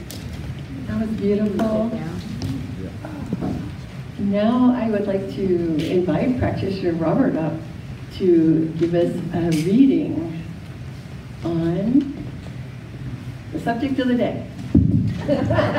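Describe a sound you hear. A woman speaks with animation through a microphone in an echoing hall.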